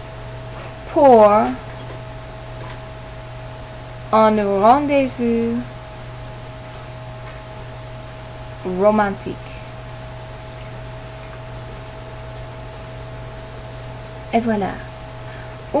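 A woman speaks slowly and clearly into a microphone, in short phrases with pauses.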